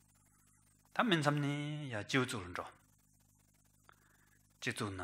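A man speaks slowly and calmly into a microphone.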